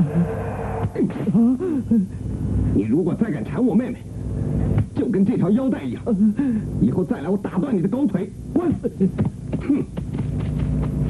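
A man speaks forcefully, close by.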